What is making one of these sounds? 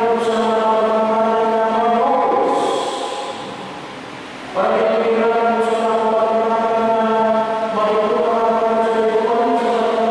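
A man chants in a steady, sustained voice through a microphone in an echoing hall.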